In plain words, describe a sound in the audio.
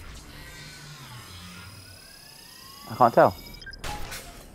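A laser beam fires with a sharp, ringing burst.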